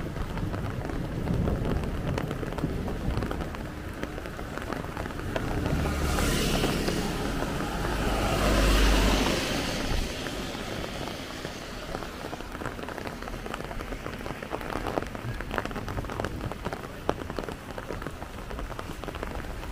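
Tyres hiss on a wet road as a vehicle drives along.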